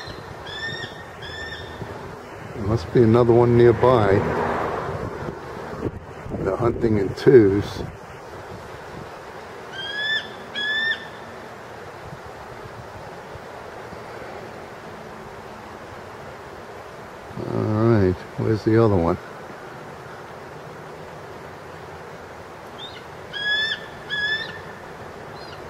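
An eagle calls with high, piping chirps.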